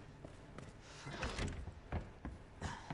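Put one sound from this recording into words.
A heavy wooden door opens.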